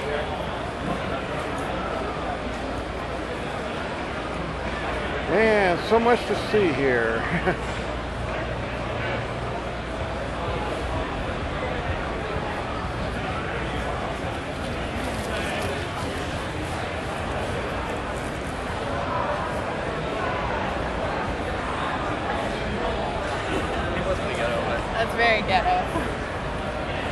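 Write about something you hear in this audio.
A crowd of people chatter throughout in a large echoing hall.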